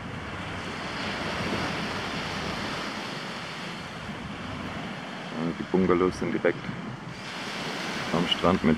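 Small waves wash gently onto a sandy shore.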